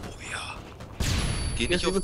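Pistol shots fire sharply.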